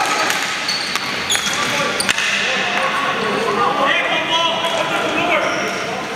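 Hockey sticks clack against a ball in a large echoing hall.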